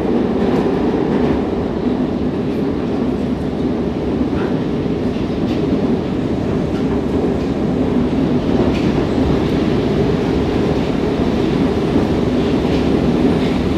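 A metro train rumbles and roars as it runs through a tunnel.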